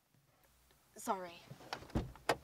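A young woman cries out inside a car.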